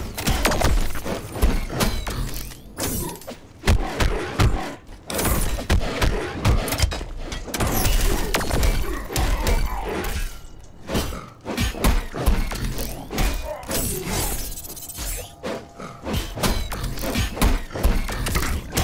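Punches and kicks land with heavy thuds in a fast fight.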